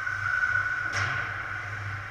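A hockey stick smacks a puck.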